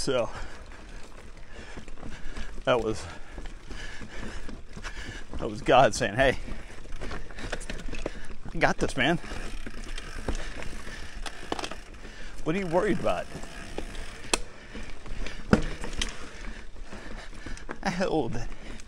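A bicycle rattles and clunks over bumps and roots.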